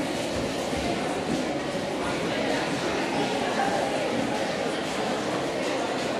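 A crowd of children and adults murmurs and chatters in a large echoing hall.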